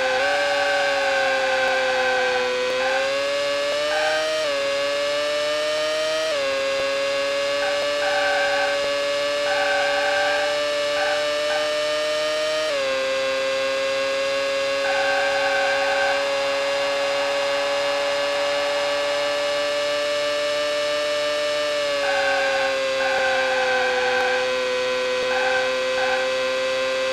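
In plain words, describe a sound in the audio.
A racing car engine whines loudly, its pitch climbing as it shifts up through the gears.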